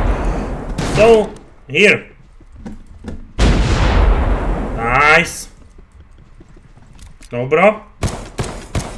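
A young man speaks with excitement into a close microphone.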